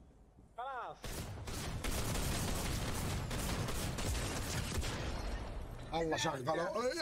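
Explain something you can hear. Gunfire crackles loudly and continuously.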